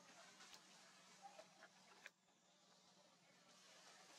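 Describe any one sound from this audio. Leaves and branches rustle as a monkey climbs a thin tree.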